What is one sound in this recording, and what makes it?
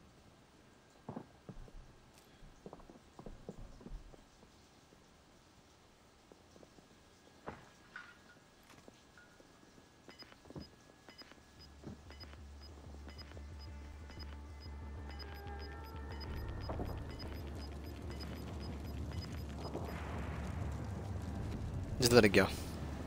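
Footsteps thud softly on a wooden floor.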